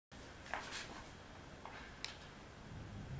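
Patch cables click softly into sockets.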